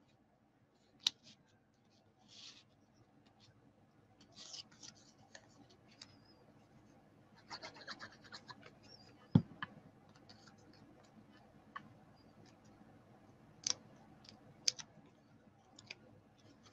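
Paper rustles softly as it is handled and pressed down.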